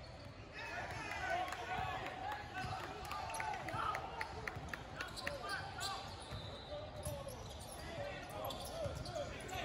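Sneakers squeak sharply on a hardwood court, echoing in a large hall.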